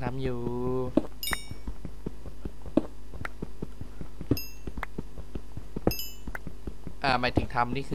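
A pickaxe chips at stone with quick, repeated knocks.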